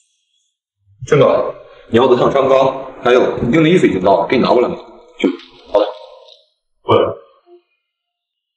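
A young man speaks calmly, offering something.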